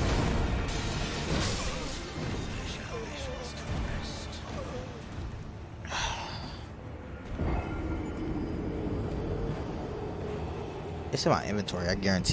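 Game battle sounds clash and rumble.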